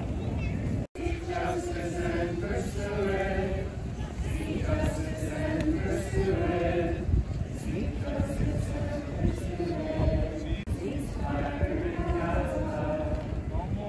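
A group of people sings together outdoors.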